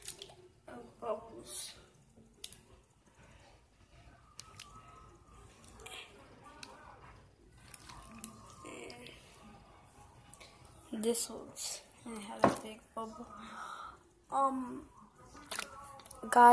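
Slime squishes and squelches under fingers.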